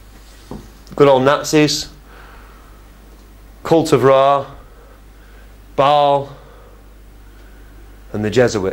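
A man speaks into a microphone in a room, pausing between phrases.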